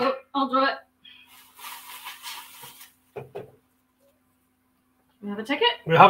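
Paper tickets rustle in a metal bucket.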